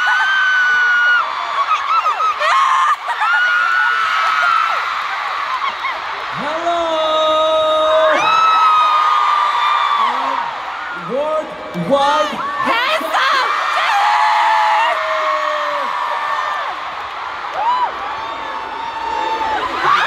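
A young man sings through loudspeakers in a large open-air arena.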